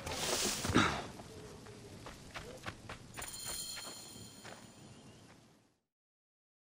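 Footsteps run quickly over dusty ground.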